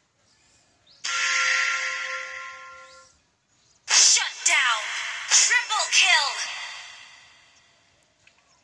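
Game sound effects ring out as spells are cast.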